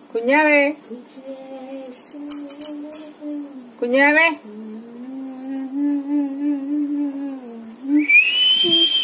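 A parrot mimics speech in a high, warbling voice.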